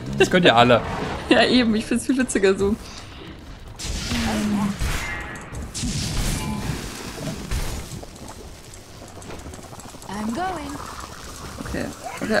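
Fiery spell blasts whoosh and crackle.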